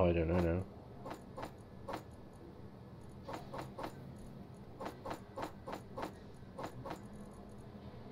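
Short clicks sound as items are moved between containers.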